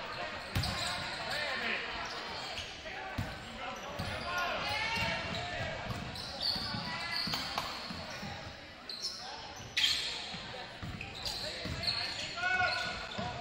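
Basketball shoes squeak sharply on a gym floor.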